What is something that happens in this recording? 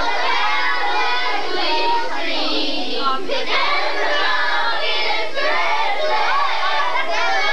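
A crowd of children talks and shouts excitedly in an echoing room.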